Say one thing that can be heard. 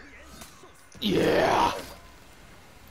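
A loud icy whoosh sweeps past.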